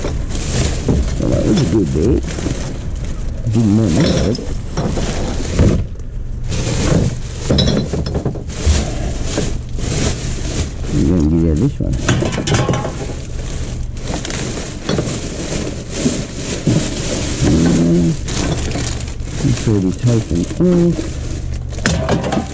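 Plastic bin bags rustle and crinkle close by.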